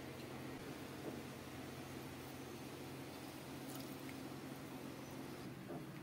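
A metal spatula scrapes a fried egg onto a ceramic plate.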